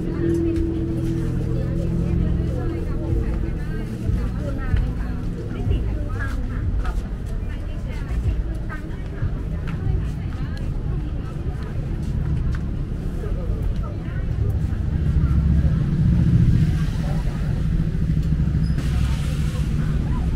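People chatter nearby in a busy crowd.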